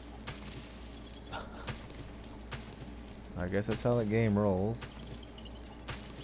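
Footsteps crunch through dry grass at a steady walking pace.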